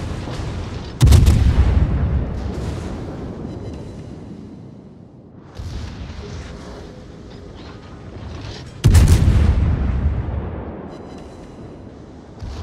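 Large naval guns fire in booming salvos, each blast rumbling away.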